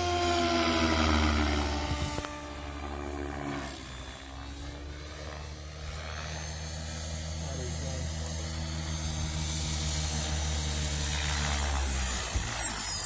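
A model helicopter's rotor whines and buzzes overhead, shifting in pitch.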